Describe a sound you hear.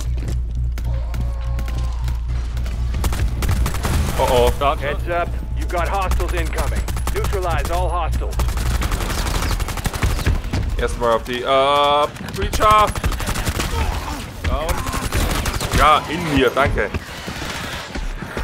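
Rapid gunfire bursts crack loudly.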